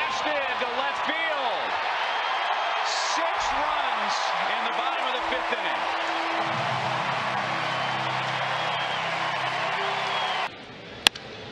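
A large crowd cheers loudly in a stadium.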